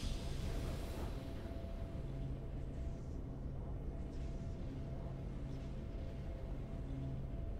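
Triumphant game music plays steadily.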